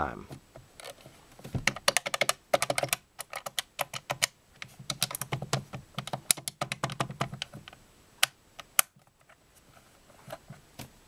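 Plastic buttons click rapidly under quick finger presses.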